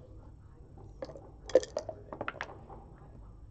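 Dice rattle in a cup and clatter onto the board.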